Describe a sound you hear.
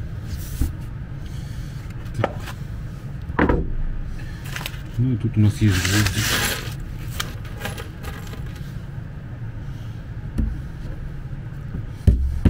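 Hands slide and rub across a wooden board.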